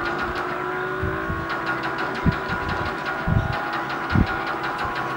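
A video game car engine hums steadily through a television speaker.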